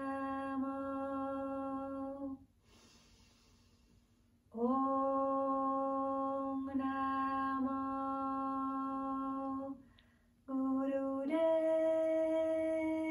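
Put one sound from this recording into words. A woman chants long, steady, held tones close by, pausing briefly between them.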